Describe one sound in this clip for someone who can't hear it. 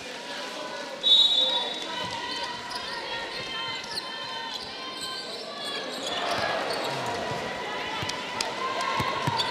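A crowd murmurs and cheers throughout a large echoing arena.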